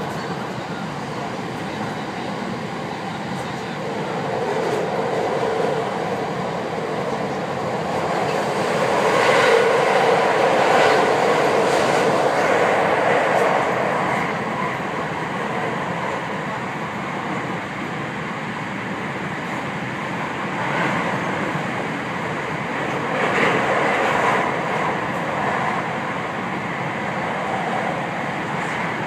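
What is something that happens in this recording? A train carriage rumbles and rattles steadily along the tracks.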